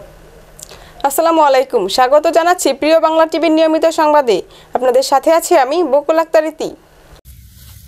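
A young woman reads out calmly and clearly into a microphone.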